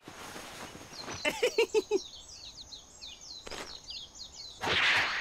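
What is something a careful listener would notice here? A fishing line whips through the air.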